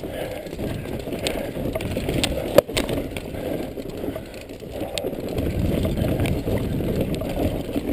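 Wooden planks clatter under bicycle wheels.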